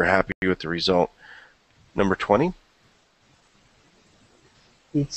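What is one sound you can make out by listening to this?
A man speaks calmly into a microphone, in short phrases.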